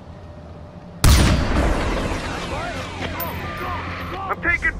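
A rifle shot rings out and echoes away.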